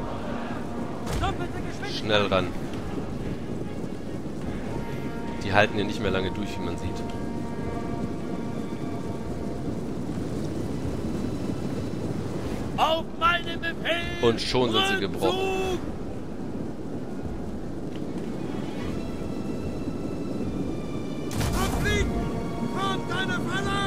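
A large battle crowd roars and clashes steadily.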